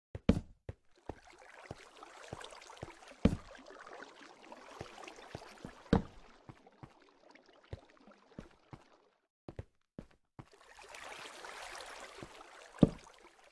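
Water trickles and splashes nearby.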